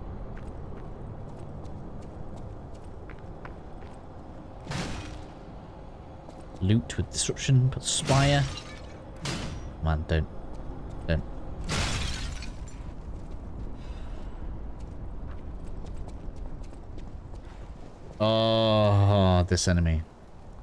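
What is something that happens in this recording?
Footsteps tread on stone and rubble.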